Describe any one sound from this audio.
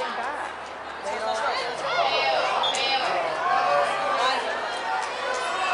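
Spectators nearby chatter and call out outdoors.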